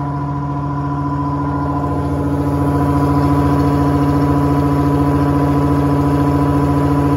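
A washing machine drum spins with a steady droning hum that grows a little louder.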